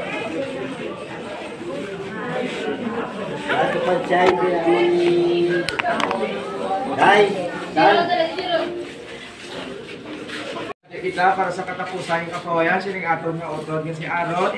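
A crowd of people murmurs and talks nearby, outdoors.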